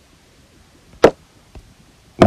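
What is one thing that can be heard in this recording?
A chess piece clicks sharply into place.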